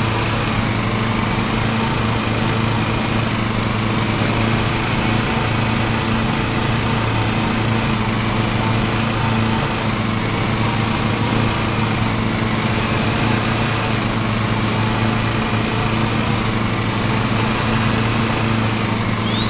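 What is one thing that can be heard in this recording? A riding lawn mower engine drones steadily.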